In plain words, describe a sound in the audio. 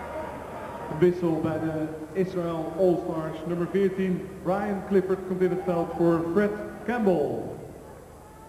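A crowd of spectators chants loudly in a large echoing hall.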